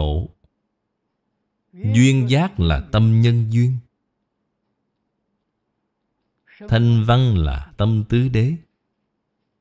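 An elderly man speaks calmly and slowly into a close microphone, in short phrases with pauses.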